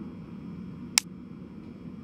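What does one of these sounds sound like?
A short click sounds as a menu opens.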